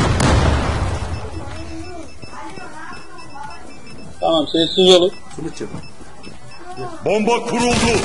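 A bomb keypad beeps rapidly as buttons are pressed.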